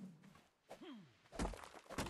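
A stone pick strikes a rock.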